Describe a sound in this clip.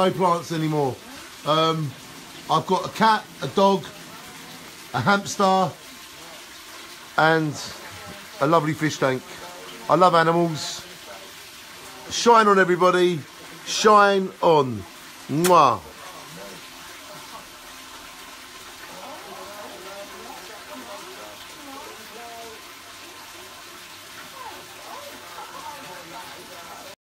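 Water pours steadily into a tank and splashes.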